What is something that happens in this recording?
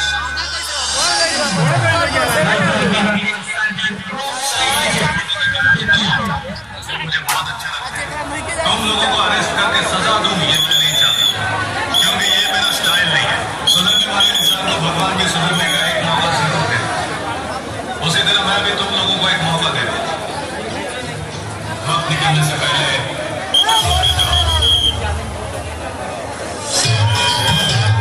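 A large crowd chatters and shouts loudly close by, outdoors.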